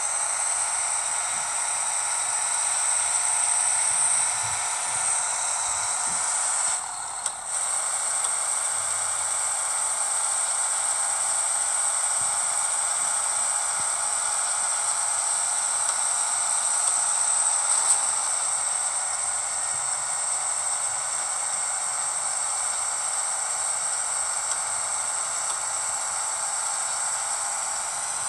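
A truck engine drones steadily as it drives along.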